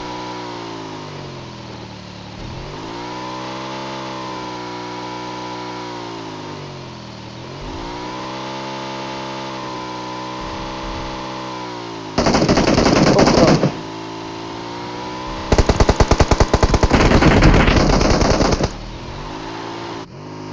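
A motorbike engine hums and revs up and down as the bike rides over rough ground.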